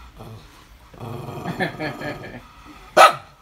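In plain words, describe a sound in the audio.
A small dog growls low.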